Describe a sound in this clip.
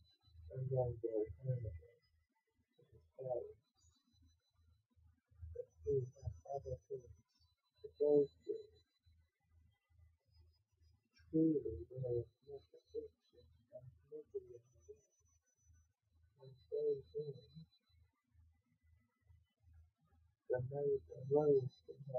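A young man reads aloud close by, in short bursts with pauses.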